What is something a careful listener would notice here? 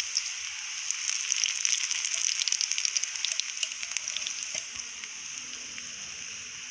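Hot oil sizzles and crackles steadily around frying flatbreads.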